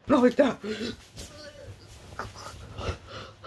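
Cloth rustles as a shirt is pulled off.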